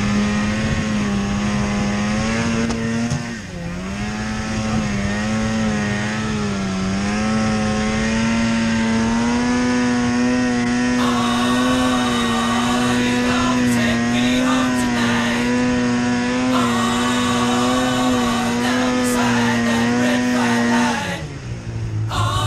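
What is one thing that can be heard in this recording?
A snowmobile engine drones loudly up close, its pitch rising and falling as it revs.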